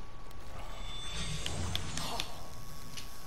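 Water splashes as a fish strikes.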